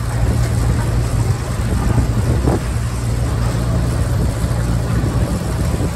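Potatoes tumble and rattle off a conveyor into a trailer.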